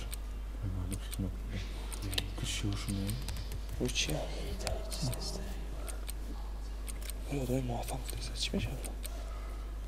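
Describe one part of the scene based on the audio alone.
Young men talk quietly in low voices.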